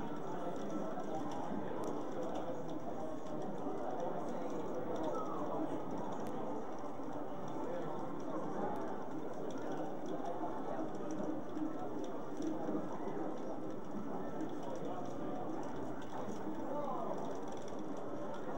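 A crowd of young people chatters and murmurs nearby.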